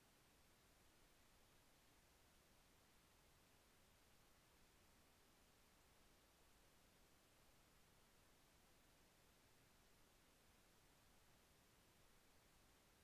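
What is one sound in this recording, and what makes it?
Television static hisses steadily.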